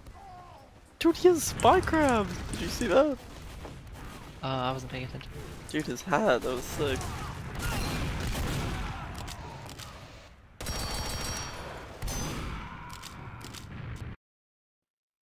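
Gunfire from a game rings out in bursts.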